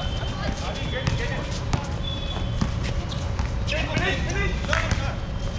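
Young men call out to each other across an open outdoor court.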